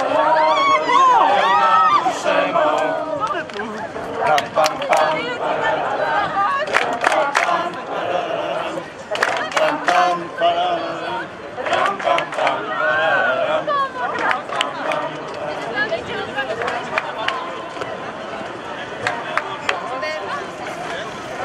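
A crowd of men talks and calls out nearby outdoors.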